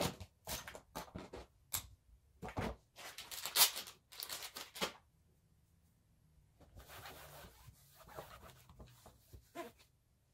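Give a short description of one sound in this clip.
A plastic tray knocks and rattles as it is set down and lifted.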